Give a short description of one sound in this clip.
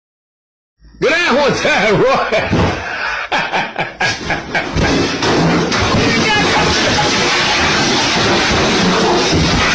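A young man laughs hard, close to a microphone.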